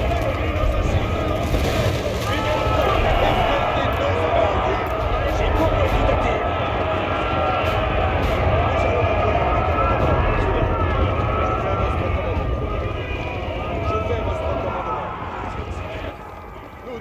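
Weapons clash and clang in a large, dense battle.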